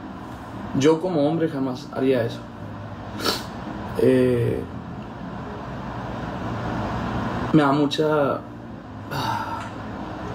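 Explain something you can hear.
A young man speaks casually and close to a microphone, in short bursts with pauses.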